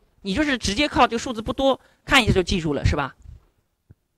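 A man speaks loudly and with animation into a microphone.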